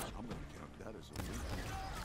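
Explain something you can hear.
A large creature snarls close by.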